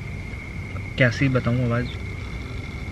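A young man speaks briefly and animatedly up close.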